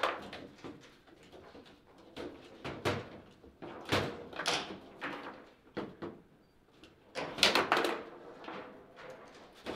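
Foosball rods rattle and clunk as players spin and slide them.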